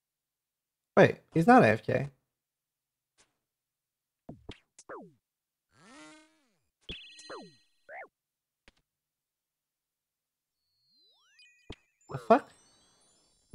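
A young man speaks briefly and with animation close to a microphone.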